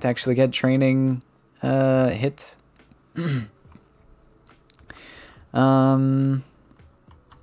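A young man speaks with animation into a close microphone, drawing out his words.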